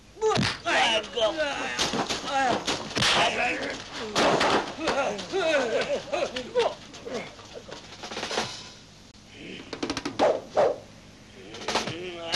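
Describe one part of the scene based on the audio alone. Punches land with sharp thwacks.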